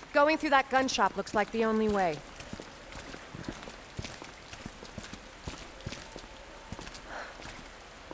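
Footsteps tap on wet pavement.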